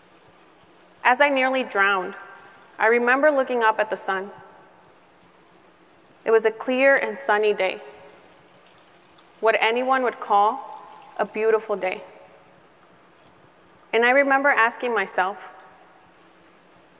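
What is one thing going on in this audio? A young woman speaks calmly into a microphone in short phrases with pauses.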